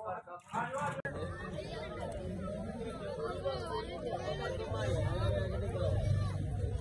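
A crowd of boys and men chatter outdoors.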